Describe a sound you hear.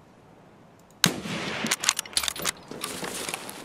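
A rifle rattles and clicks as it is handled.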